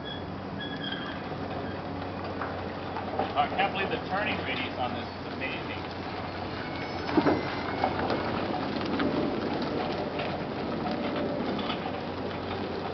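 A small electric cart hums steadily as it drives.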